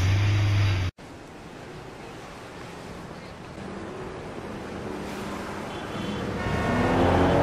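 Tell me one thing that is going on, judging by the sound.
Traffic hums on a street.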